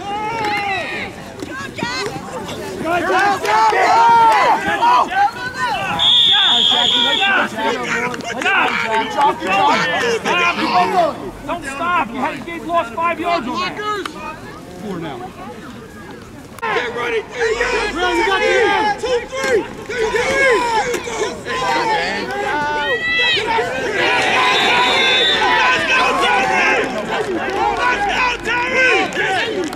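Men and women shout and cheer loudly outdoors.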